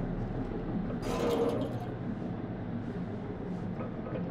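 Soldiers' boots step softly on a hard floor.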